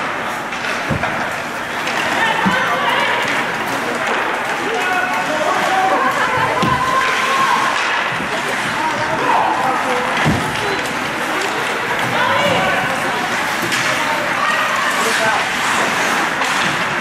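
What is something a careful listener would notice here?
Spectators chatter and call out in an echoing rink.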